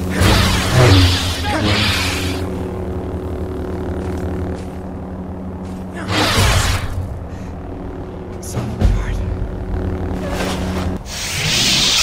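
An energy blade hums steadily.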